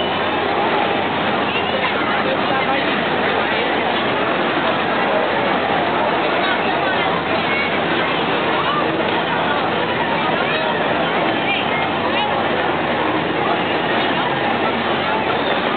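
A crowd of men, women and children chatters outdoors nearby.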